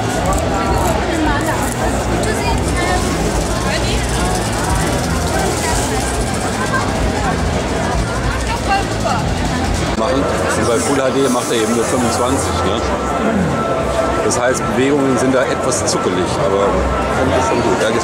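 A crowd chatters outdoors.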